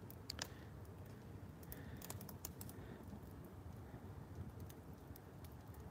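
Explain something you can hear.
Burning wood crackles and pops.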